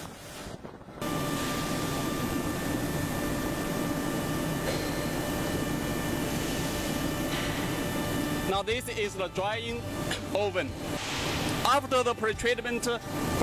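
Factory machinery hums steadily in a large echoing hall.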